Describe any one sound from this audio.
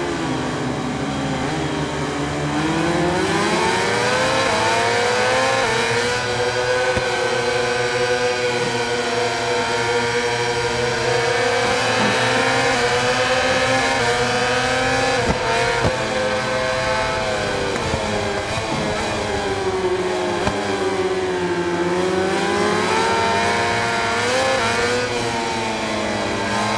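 A motorcycle engine roars at high revs, its pitch rising and falling.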